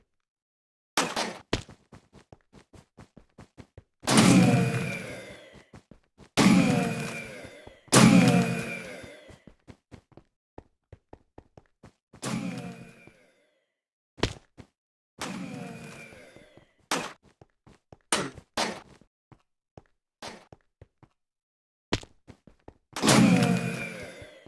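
A game laser gun fires with a sharp ringing blast.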